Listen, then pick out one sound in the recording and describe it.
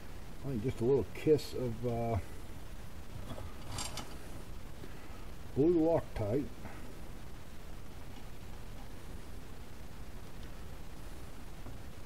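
Small metal screws clink softly against a metal plate.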